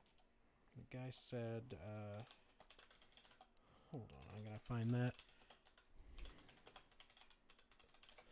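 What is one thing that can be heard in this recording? A man types on a laptop keyboard.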